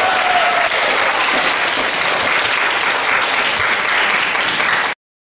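A crowd applauds loudly in a large room.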